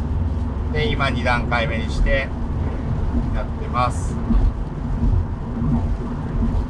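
A car engine hums steadily at low pitch.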